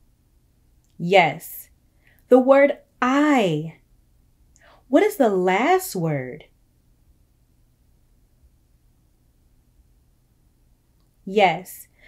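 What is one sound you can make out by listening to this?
A young woman speaks with animation into a close microphone, in short bursts.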